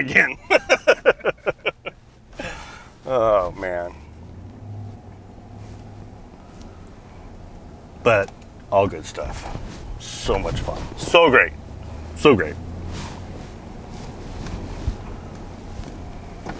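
A car engine hums steadily from inside the cab.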